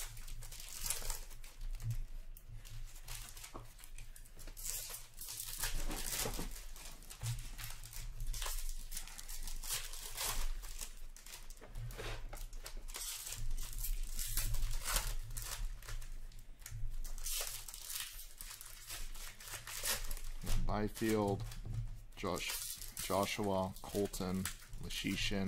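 Trading cards rustle and slide against each other as they are handled and sorted.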